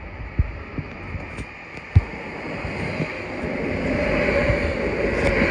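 Wheels clack over rail joints.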